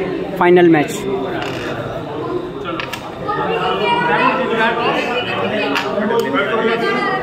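A carrom striker clicks against wooden pieces on a board.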